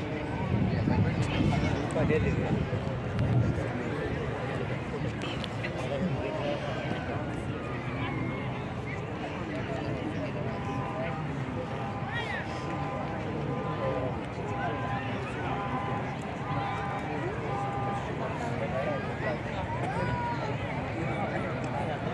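A large crowd of men murmurs and chatters all around outdoors.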